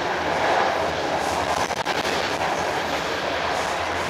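A passing train rushes by close outside with a loud whoosh.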